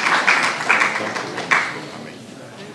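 People clap their hands in a room.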